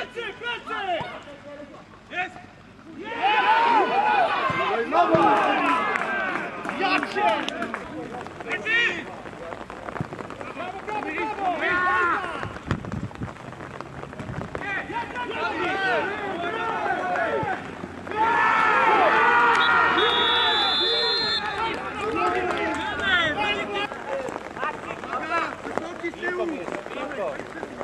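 Several men talk and shout excitedly close by, outdoors.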